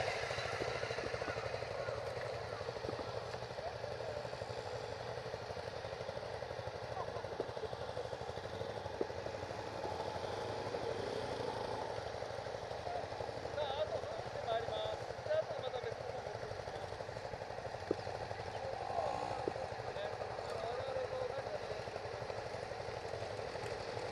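A dirt bike engine idles and revs close by.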